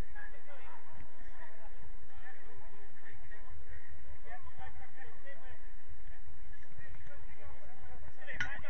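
Players call out to each other in the distance outdoors.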